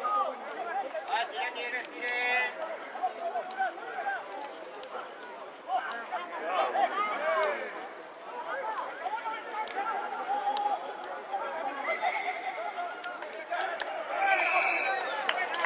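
A referee's whistle blows sharply outdoors.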